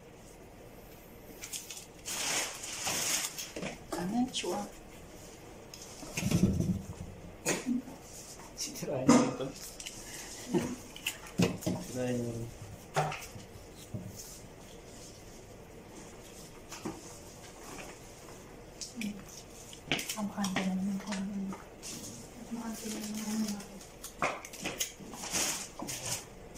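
Rose stems and leaves rustle as they are placed in a vase.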